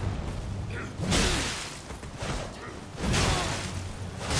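A blade whooshes through the air in quick swings.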